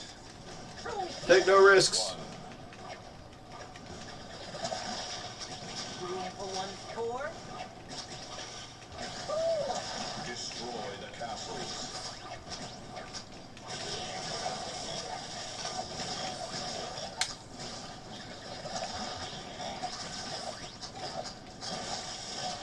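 Upbeat video game music plays throughout.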